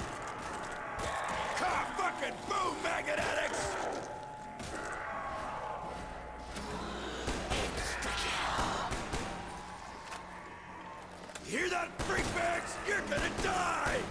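A rifle fires shots.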